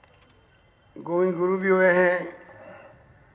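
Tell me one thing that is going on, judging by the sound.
A man speaks loudly into a microphone over loudspeakers.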